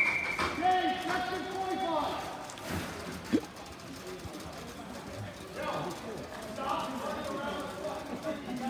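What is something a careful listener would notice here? Roller skate wheels roll and scrape on a hard floor.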